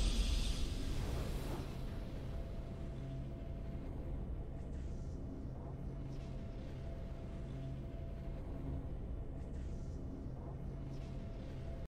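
A triumphant music fanfare plays softly.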